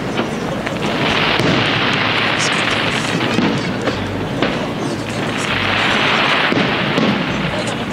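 Crackling fireworks sizzle and pop.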